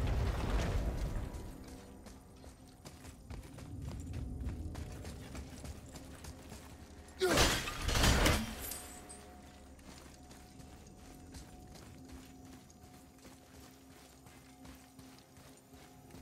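Heavy footsteps run across a stone floor.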